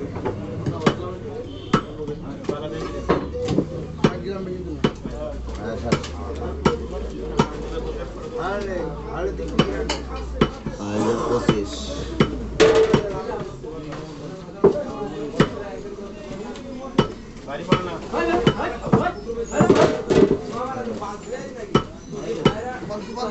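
A butcher's cleaver chops meat on a wooden block with sharp, regular thuds.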